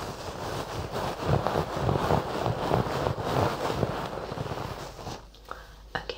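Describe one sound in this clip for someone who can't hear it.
A fluffy object brushes and rustles against a microphone.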